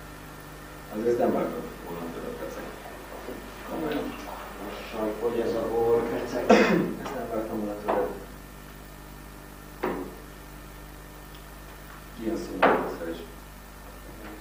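Young men talk calmly, with pauses between phrases.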